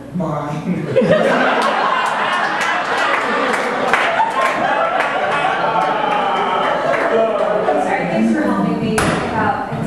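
An audience laughs loudly.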